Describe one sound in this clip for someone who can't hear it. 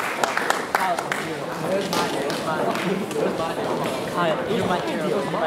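Heels click on a wooden stage floor.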